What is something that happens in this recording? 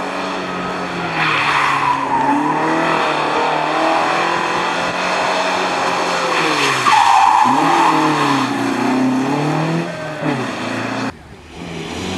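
A car engine roars and revs up and down as the car drives past.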